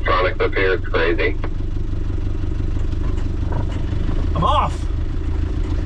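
A middle-aged man laughs and talks with animation close by.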